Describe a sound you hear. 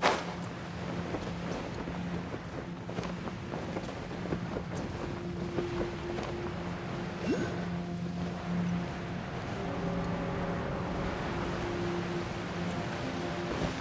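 Wind rushes softly past a glider in flight.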